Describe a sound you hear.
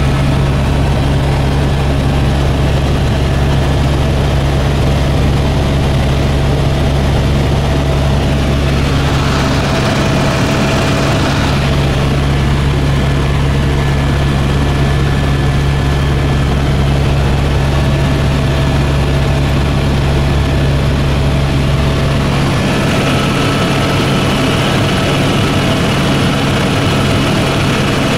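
Wind rushes past the aircraft.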